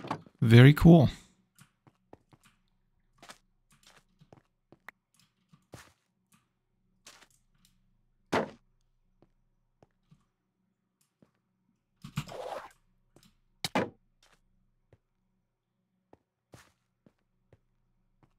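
Footsteps tap softly on stone and sand.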